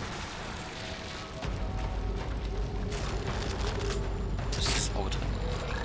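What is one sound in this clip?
A creature growls low.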